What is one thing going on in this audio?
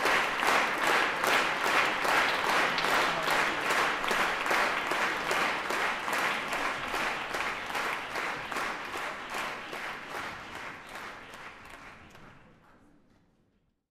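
An audience applauds in rhythmic unison in a large echoing hall, then fades away.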